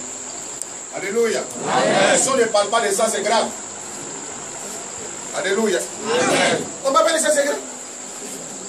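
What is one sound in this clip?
A man preaches loudly and with animation.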